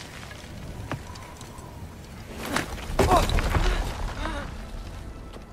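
Loose rocks crumble and tumble down a cliff.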